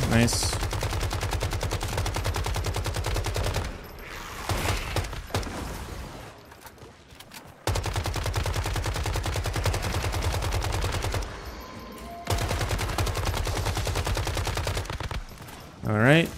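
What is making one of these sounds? Rapid automatic gunfire rattles in fast bursts.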